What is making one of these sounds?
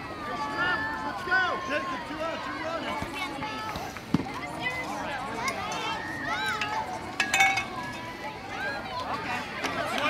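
Young children shout and cheer outdoors.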